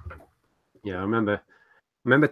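A young man speaks briefly, heard through an online call.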